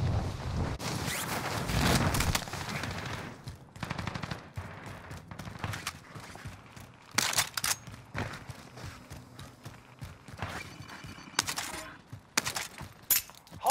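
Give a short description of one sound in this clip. Footsteps run quickly over stone paving.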